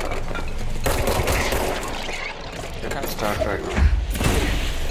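A gun fires a sharp shot.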